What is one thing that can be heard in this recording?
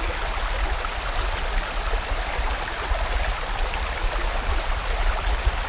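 A stream rushes and splashes over rocks.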